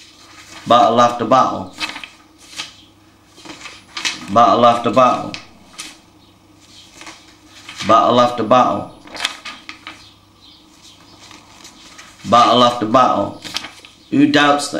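Paper rustles.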